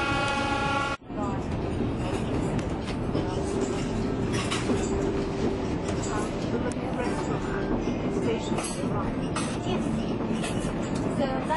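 Men and women chat in low voices nearby.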